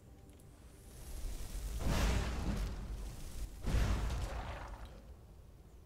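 Fire roars and whooshes in loud bursts.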